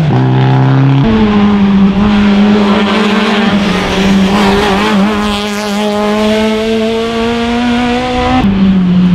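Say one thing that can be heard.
A second rally car engine roars as it accelerates past.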